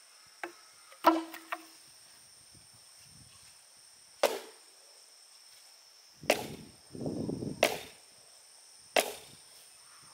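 A mallet pounds a wooden post into the ground with dull, heavy thuds.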